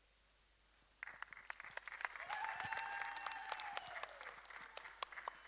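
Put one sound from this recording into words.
An audience claps and cheers in a large echoing hall.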